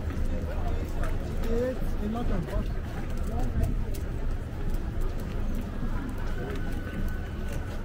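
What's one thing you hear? People talk in passing on a busy street, outdoors.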